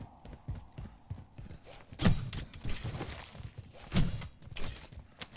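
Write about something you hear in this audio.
Footsteps thud quickly on the ground.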